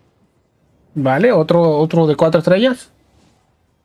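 A man speaks briefly with animation into a close microphone.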